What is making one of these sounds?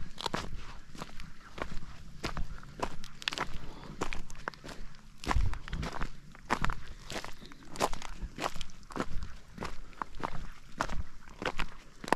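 Footsteps crunch on loose flat stones.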